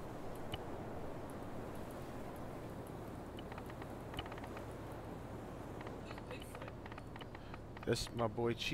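Mouse buttons click faintly.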